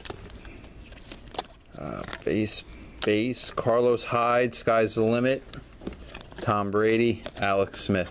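Trading cards rustle and slide against each other as they are flipped through.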